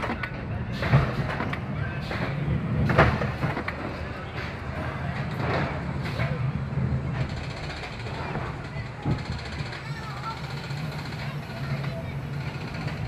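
A roller coaster car rumbles slowly along the track.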